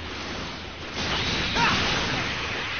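A beam attack roars and hisses.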